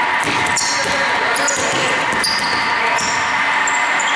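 A basketball bounces on a hardwood court in a large echoing hall.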